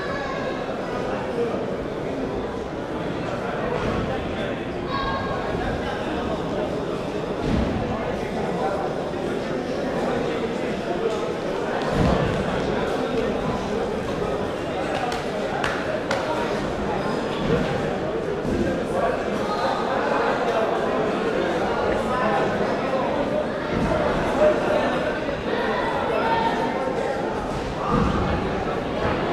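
Many voices chatter in a large echoing hall.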